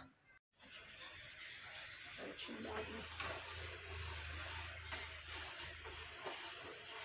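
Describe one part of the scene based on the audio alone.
A spoon stirs milk in a metal pot.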